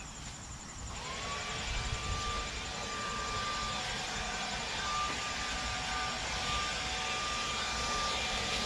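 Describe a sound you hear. A cordless leaf blower whirs steadily a short way off.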